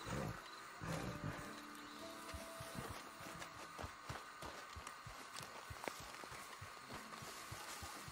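Footsteps crunch through grass and brush.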